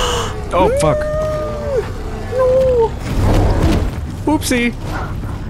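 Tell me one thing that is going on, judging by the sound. A large creature stomps heavily with deep thuds.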